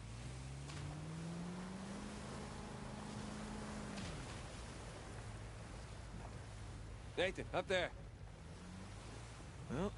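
A motorboat engine hums and rises in pitch as the boat speeds up.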